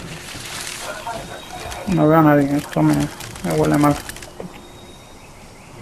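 Leafy plants rustle as someone pushes through them.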